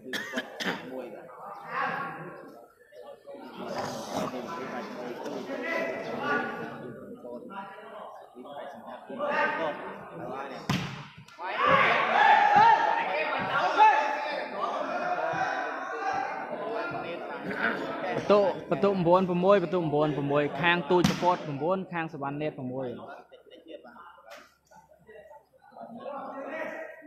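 A crowd of men talks and shouts nearby in a large echoing hall.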